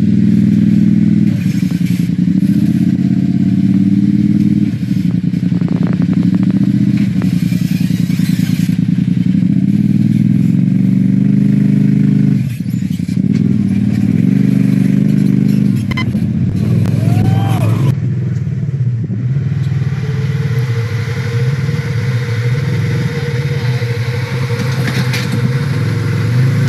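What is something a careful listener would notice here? Tyres grind and scrape over rock.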